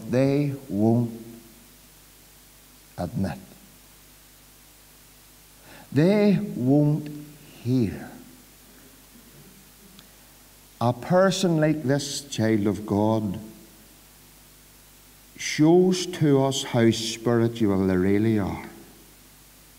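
A middle-aged man preaches with animation through a microphone, in bursts with pauses, in an echoing hall.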